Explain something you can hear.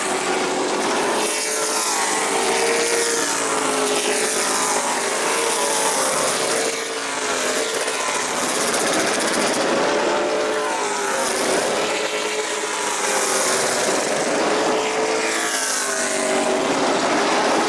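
Engine pitch sweeps down as each race car passes close by.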